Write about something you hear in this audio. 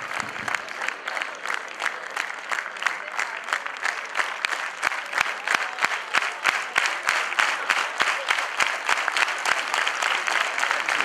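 An audience claps steadily in a large hall.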